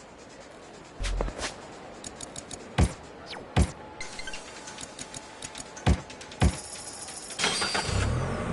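Short electronic menu clicks and beeps sound as options are selected.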